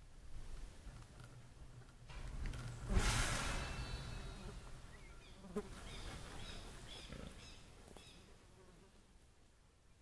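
Wind gusts across open ground outdoors.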